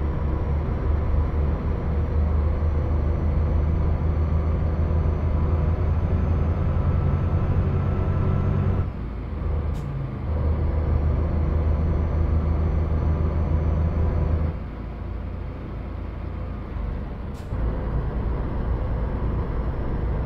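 A truck engine drones steadily, dropping and rising as gears change.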